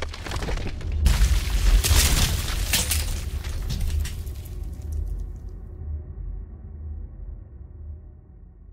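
Heavy stones crash and tumble with a deep rumble that slowly fades.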